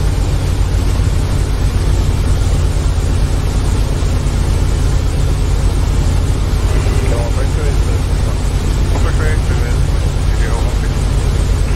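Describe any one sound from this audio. A propeller aircraft engine drones steadily.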